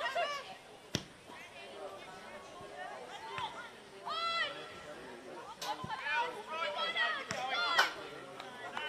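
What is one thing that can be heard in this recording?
A ball is kicked with a sharp thud.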